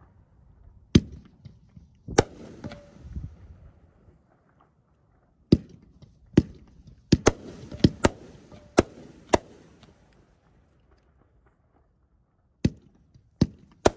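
Fireworks burst with sharp, loud bangs, echoing outdoors.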